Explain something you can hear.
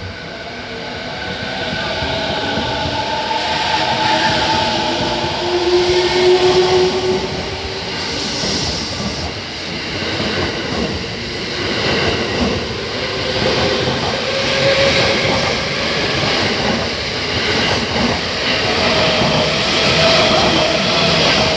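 A passenger train rushes past close by with a loud, steady rumble and clatter of wheels.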